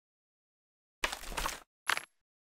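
A game menu clicks and chimes.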